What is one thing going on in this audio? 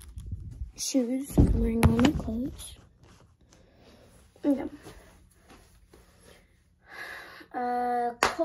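A young girl speaks and makes playful voice sounds close by.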